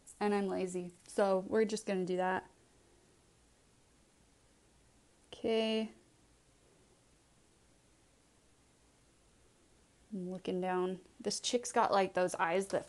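A young woman talks calmly and close up into a microphone.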